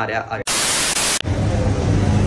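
Loud static hisses briefly.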